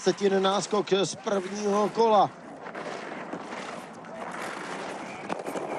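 Skis scrape and hiss across hard, icy snow.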